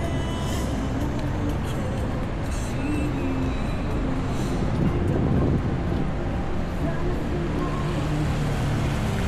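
City traffic hums steadily nearby outdoors.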